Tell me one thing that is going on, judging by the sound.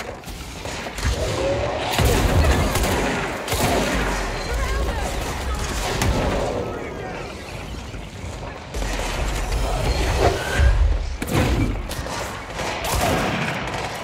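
Heavy thuds and explosions boom.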